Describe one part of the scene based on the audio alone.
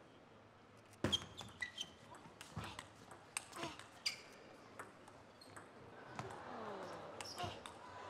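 A table tennis ball clicks rapidly back and forth off paddles and table.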